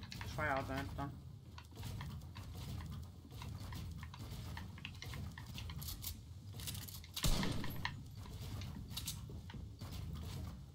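Quick game clicks and thuds sound as walls are built.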